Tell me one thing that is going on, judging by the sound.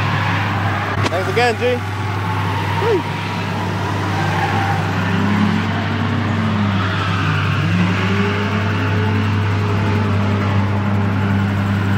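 A tractor engine idles with a steady low rumble nearby.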